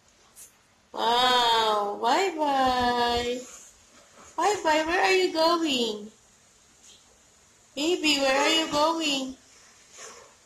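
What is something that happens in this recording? A toddler vocalizes in a high, sing-song voice.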